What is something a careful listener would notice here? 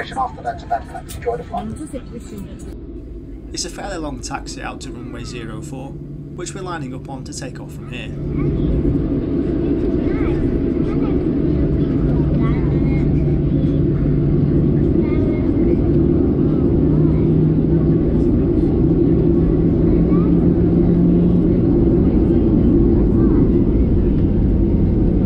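Jet engines hum steadily, rising to a louder roar.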